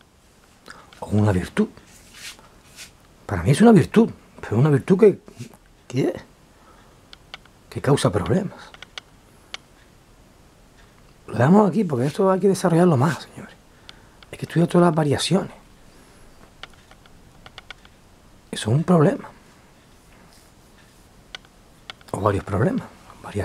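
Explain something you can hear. A middle-aged man speaks very close to a microphone, in short bursts with pauses.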